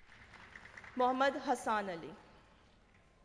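A woman speaks briefly into a microphone in a large hall.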